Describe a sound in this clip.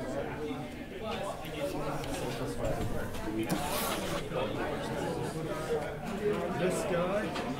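Small plastic pieces tap and slide on a tabletop.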